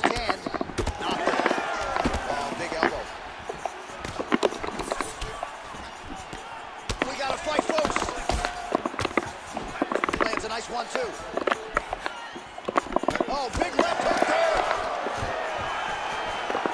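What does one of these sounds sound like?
A crowd cheers and roars throughout.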